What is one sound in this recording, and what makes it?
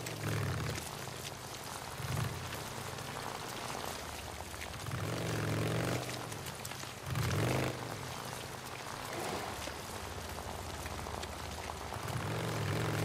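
Tyres crunch on gravel and dirt.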